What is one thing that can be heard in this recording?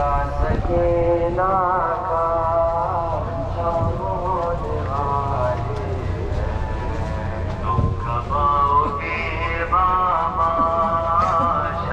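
A crowd shuffles along on foot.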